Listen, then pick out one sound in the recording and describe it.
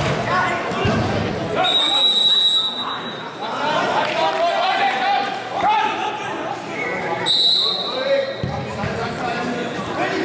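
Men on the pitch shout to one another.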